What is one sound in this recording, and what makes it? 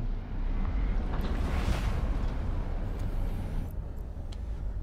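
A rushing whoosh swells and fades as a ship speeds away.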